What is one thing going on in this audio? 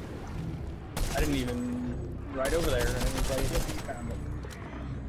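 Game explosions boom and crackle.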